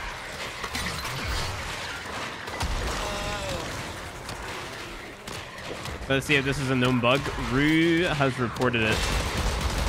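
An energy weapon fires crackling bursts.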